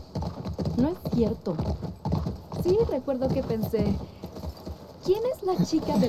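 A horse's hooves clop slowly on the ground.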